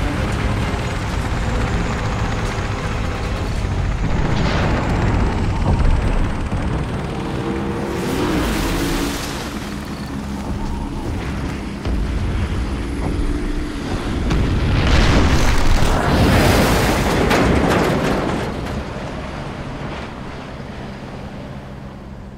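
Fire roars from a burning platform.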